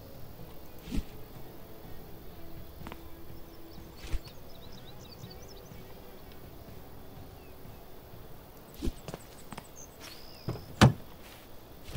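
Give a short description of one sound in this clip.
A heavy wooden frame thumps down onto a hard surface.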